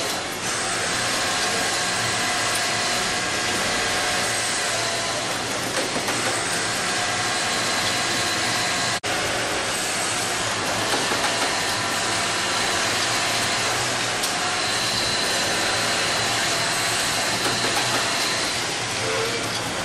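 A sewing machine stitches in quick bursts.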